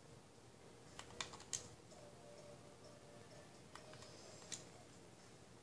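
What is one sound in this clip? Short menu clicks and chimes sound from a television.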